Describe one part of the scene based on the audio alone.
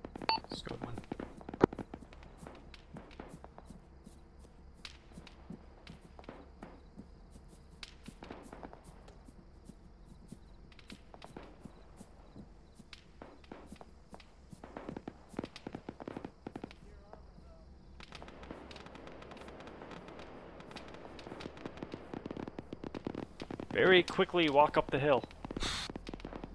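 Footsteps swish through grass at a steady walking pace.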